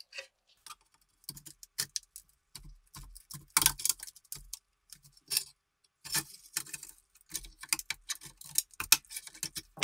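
A metal tool scrapes and clicks against a rusty metal box.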